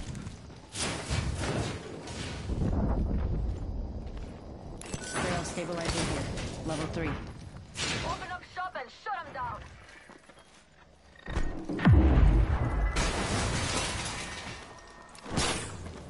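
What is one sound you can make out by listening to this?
Footsteps thud quickly on a hard metal floor.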